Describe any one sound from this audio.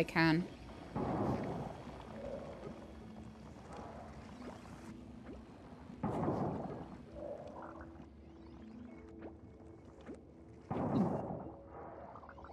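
A pickaxe strikes rock with a heavy crunch.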